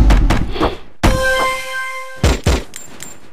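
A bright musical chime rings out as an item is collected.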